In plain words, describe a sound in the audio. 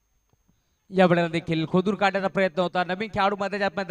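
A young man shouts loudly in celebration outdoors.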